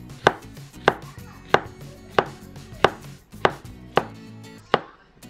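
A knife chops through soft fruit and knocks on a cutting board at a steady pace.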